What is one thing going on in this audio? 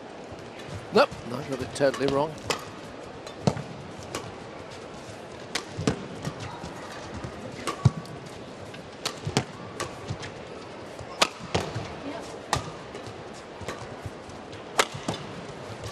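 Rackets smack a shuttlecock back and forth in quick rallies.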